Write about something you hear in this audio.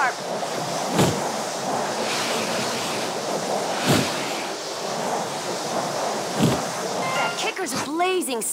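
Skis hiss steadily over snow.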